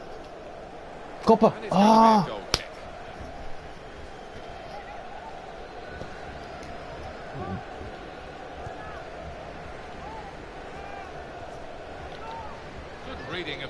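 A stadium crowd murmurs and chants steadily.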